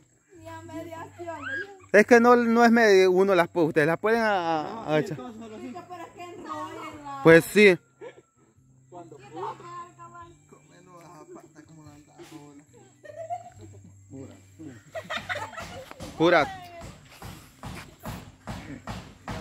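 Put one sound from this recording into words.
Children shout and laugh loudly outdoors.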